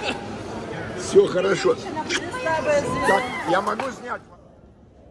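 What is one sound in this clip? A woman laughs close by.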